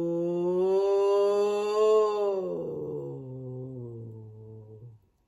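A woman sings a long vocal slide close by, rising slightly and then gliding down low.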